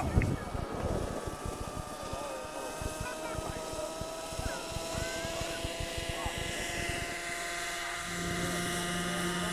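A model helicopter engine revs up, its whine rising in pitch.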